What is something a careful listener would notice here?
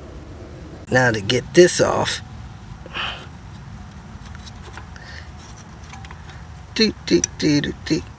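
A metal brake part rattles and clinks as it is wiggled by hand.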